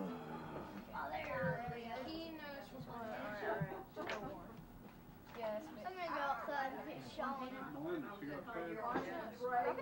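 Young boys talk with each other nearby.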